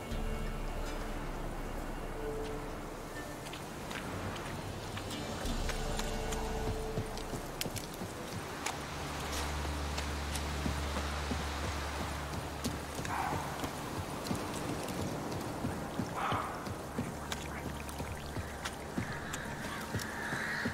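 Footsteps run quickly along a soft dirt path.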